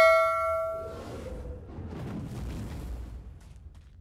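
A magic spell bursts with a shimmering whoosh.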